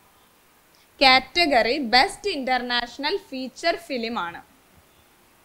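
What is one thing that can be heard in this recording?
A young woman speaks with animation, close through a microphone.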